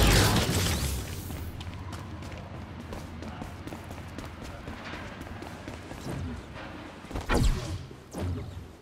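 Running footsteps patter on pavement.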